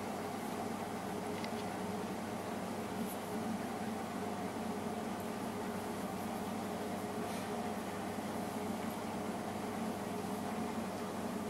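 A washing machine hums and churns steadily.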